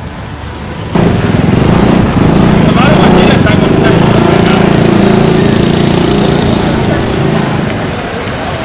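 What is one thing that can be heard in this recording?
A truck engine rumbles as the truck drives slowly past.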